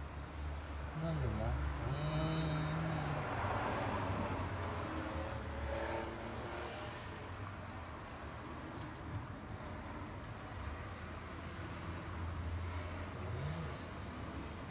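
A man speaks softly and gently close by.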